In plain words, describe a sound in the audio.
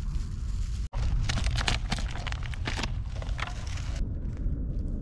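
A plastic food container lid rustles and crackles.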